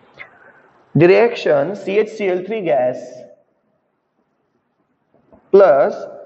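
A man speaks calmly and clearly, as if teaching, close by.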